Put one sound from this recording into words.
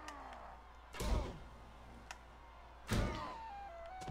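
A bowstring snaps sharply as arrows are loosed.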